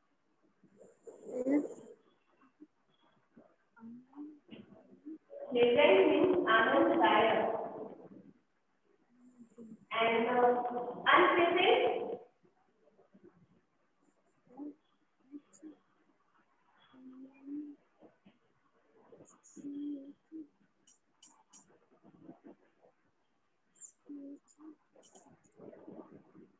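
A girl speaks softly and briefly, close by.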